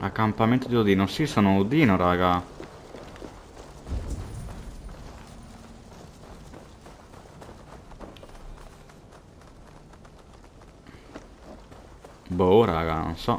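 Footsteps run over stone and grass.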